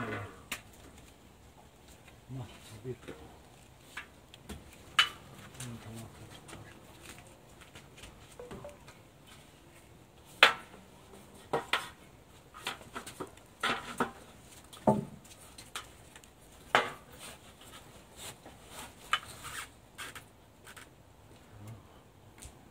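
A metal strip clatters and knocks against a window frame.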